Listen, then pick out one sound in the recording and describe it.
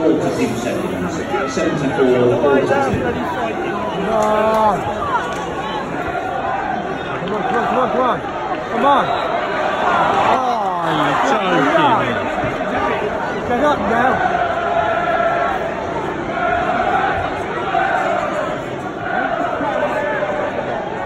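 A large crowd of football fans chants and sings loudly in an open stadium.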